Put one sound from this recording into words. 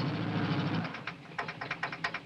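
Car tyres crunch slowly over gravel.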